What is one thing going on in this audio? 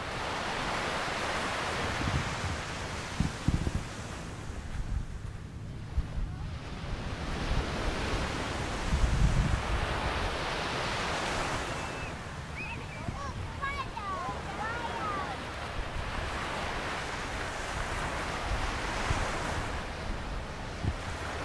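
Wind rumbles across the outdoors.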